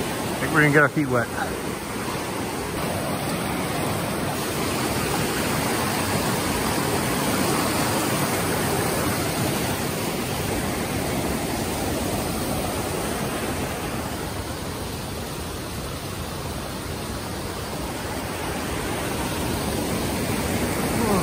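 A fast stream rushes and splashes steadily over rocks close by.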